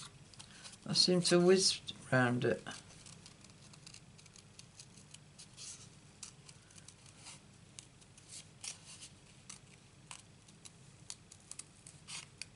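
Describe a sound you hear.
Scissors snip through paper in short, quick cuts.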